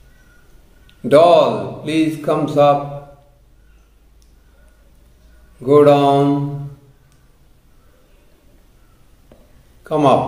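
An elderly man speaks calmly and close by, in short phrases.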